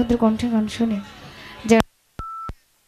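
A young woman sings into a microphone over a loudspeaker system.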